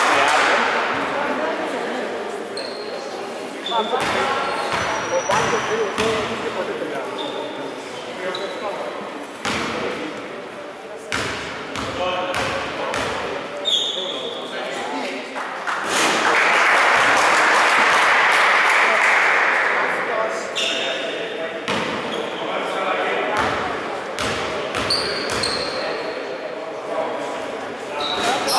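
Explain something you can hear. Spectators chatter and call out in an echoing hall.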